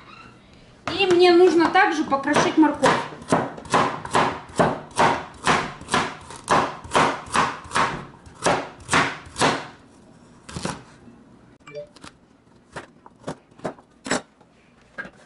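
A knife chops through carrot onto a plastic cutting board in quick, steady strokes.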